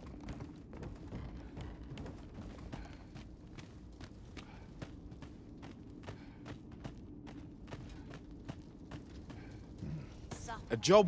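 Footsteps tap steadily.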